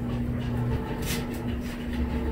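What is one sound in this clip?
A metal pot lid clanks.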